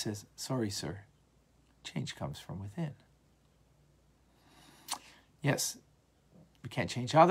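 A middle-aged man speaks calmly and closely into a microphone, with pauses.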